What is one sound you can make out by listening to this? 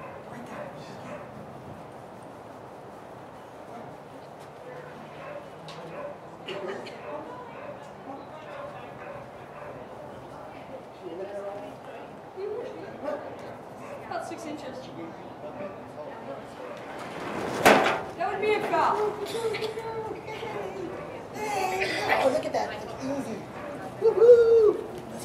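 People chatter in the background outdoors.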